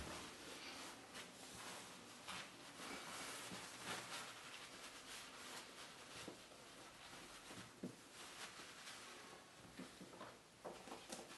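Paper rustles and crinkles as it is handled and crumpled.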